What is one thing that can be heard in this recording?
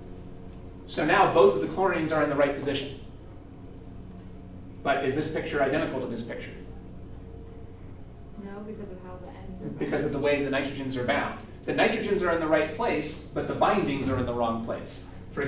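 A man lectures calmly and clearly, close by.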